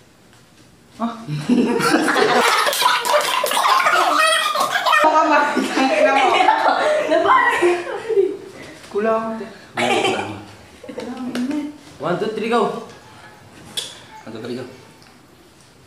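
Teenage boys laugh and shout loudly close by.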